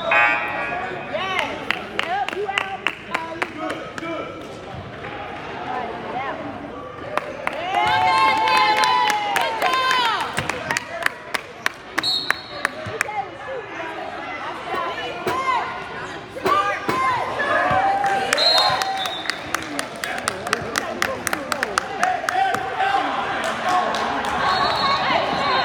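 Young players shout and call out across an echoing hall.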